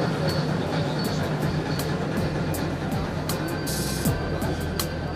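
Model train wheels click over rail joints.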